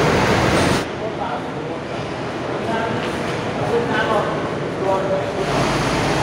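A bus engine rumbles as the bus rolls slowly.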